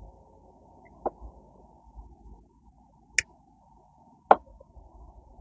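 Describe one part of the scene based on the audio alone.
Small scissors snip through roots with sharp clicks.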